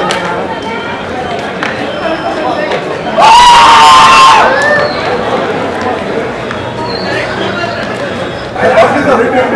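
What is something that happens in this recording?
A crowd murmurs and chatters nearby.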